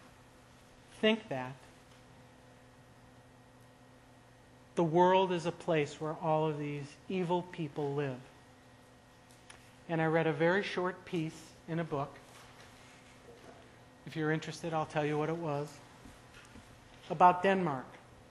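A man speaks into a microphone in short phrases, with pauses between them.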